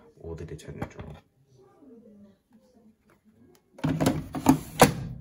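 A plastic drawer slides and clatters into place.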